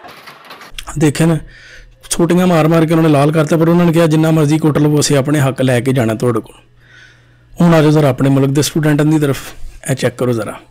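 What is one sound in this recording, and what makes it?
A man speaks close to a microphone with animation.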